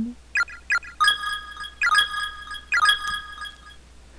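Short electronic menu beeps ring out several times.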